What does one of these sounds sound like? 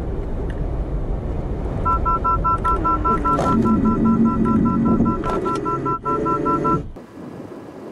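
Tyres rumble on asphalt as a small car brakes hard.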